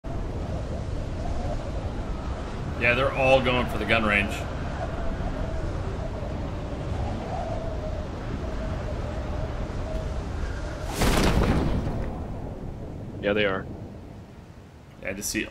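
Wind rushes loudly past a falling skydiver.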